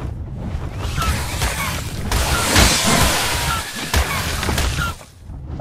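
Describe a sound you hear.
Creatures clash and screech in a short fight.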